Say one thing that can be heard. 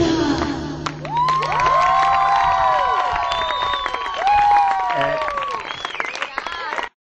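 A woman calls out nearby in long, sliding wails.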